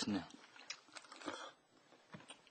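A man slurps soup noisily.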